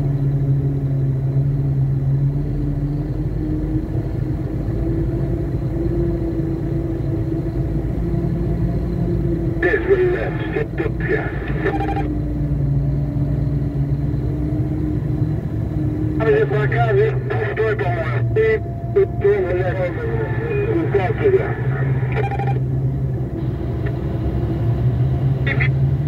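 A vehicle engine hums steadily up close.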